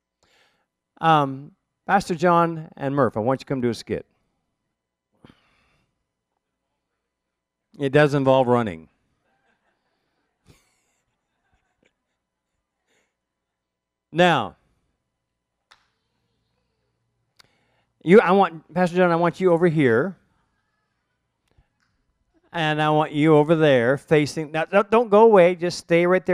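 An elderly man speaks expressively in bursts, close to a microphone, with pauses between phrases.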